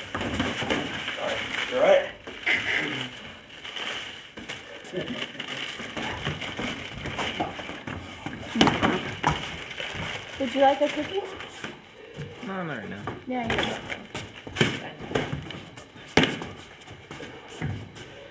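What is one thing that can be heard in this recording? Boxing gloves thud against each other and against bodies in sharp, irregular blows.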